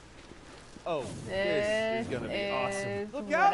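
A young man speaks, close up.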